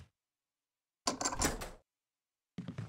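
A key turns in a lock with a click.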